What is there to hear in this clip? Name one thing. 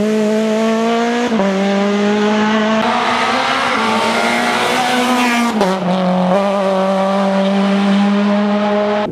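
A rally car engine roars loudly at high revs, shifting gears.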